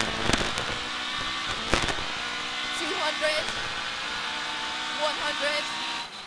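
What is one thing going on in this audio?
A rally car engine roars loudly from inside the cabin.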